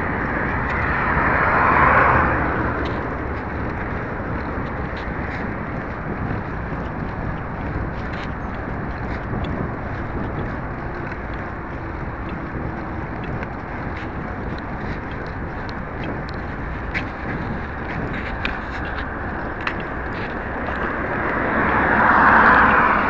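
A bicycle rattles and clicks along a path.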